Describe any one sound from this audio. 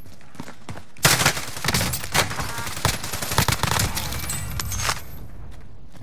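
A rifle fires rapid bursts of gunshots that echo in a large hall.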